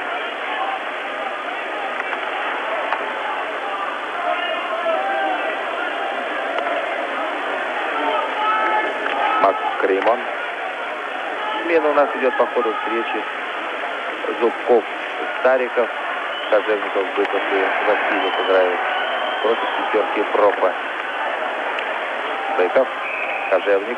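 A large crowd cheers and murmurs steadily in an echoing arena.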